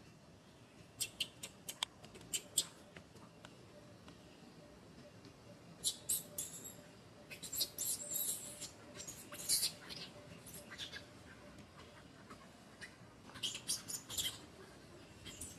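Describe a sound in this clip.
A baby monkey squeals shrilly in short, sharp cries.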